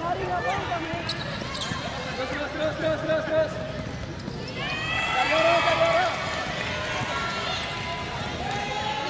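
Children shout and call out across a large echoing hall.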